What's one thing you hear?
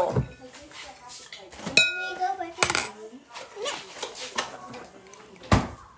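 A refrigerator door opens and shuts.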